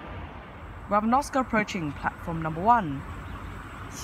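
A train horn sounds several times.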